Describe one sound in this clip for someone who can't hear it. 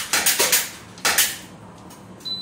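Pistol shots crack in rapid bursts in an echoing room.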